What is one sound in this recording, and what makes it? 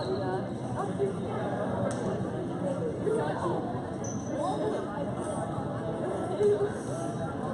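Players' sneakers squeak on a hard court.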